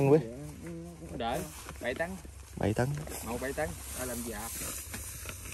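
A man talks calmly nearby, outdoors.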